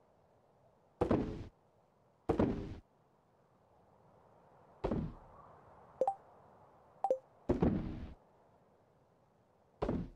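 Short game sound effects pop and click as items are picked in a menu.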